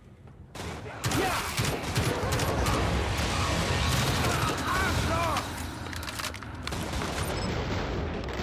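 Rapid gunfire rattles and echoes.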